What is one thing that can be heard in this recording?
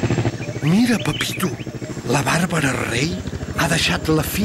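A helicopter rotor chops steadily.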